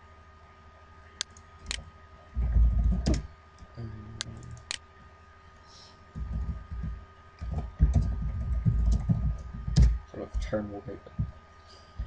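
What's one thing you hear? Keys clatter as someone types on a keyboard.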